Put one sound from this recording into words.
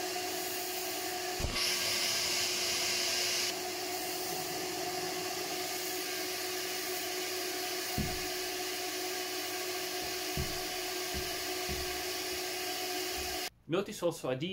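A vacuum cleaner hums steadily.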